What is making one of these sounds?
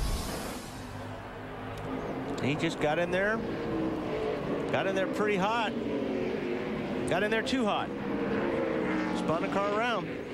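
Race car engines roar loudly, rising and falling in pitch as the cars shift gears.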